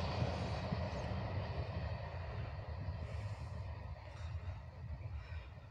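A distant train rumbles along and slowly fades.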